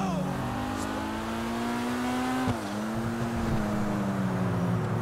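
A car engine revs loudly, drops in pitch as the gear changes, then climbs again.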